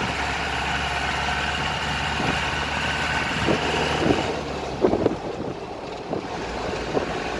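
A vehicle's engine hums steadily while driving.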